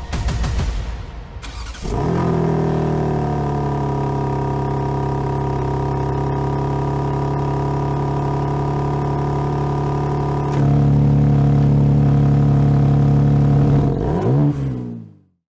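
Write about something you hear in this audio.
A powerful car engine idles with a deep, steady exhaust rumble, then revs up and settles.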